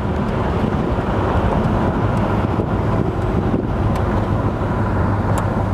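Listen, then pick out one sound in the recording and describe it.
A V8 muscle car engine rumbles as the car cruises.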